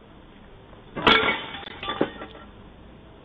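A man falls hard to the ground with a thud.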